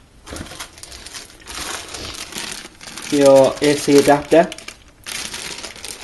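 Plastic wrapping crinkles as hands handle it.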